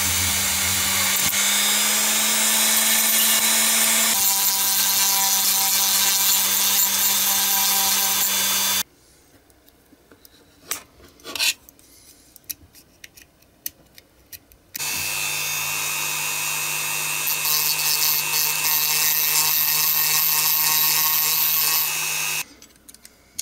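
A small rotary tool whines steadily as it grinds plastic.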